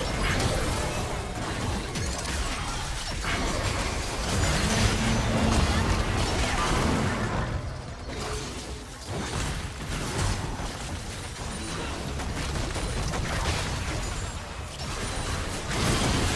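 Blows and magical blasts strike with sharp impacts.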